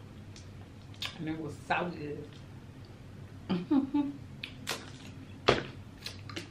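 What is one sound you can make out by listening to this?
Crab shells crack and snap in a woman's hands.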